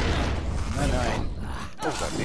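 A magical blast roars and crackles loudly.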